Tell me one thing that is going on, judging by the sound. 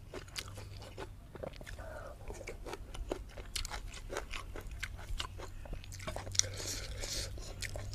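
A man chews food noisily and smacks his lips close by.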